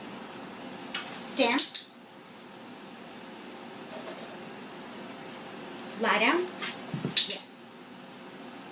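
A woman gives short commands to a dog in a lively, sing-song voice.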